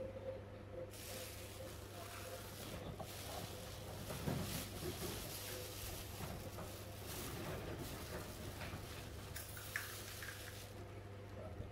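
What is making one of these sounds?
Clothing rustles as a person moves and handles the monkeys.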